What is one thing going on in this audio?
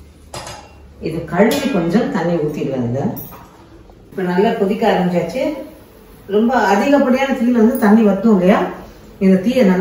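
An elderly woman speaks calmly and close to a microphone.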